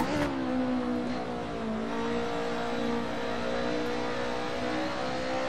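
A racing car engine roars steadily, its pitch dipping briefly and rising again as it shifts gear.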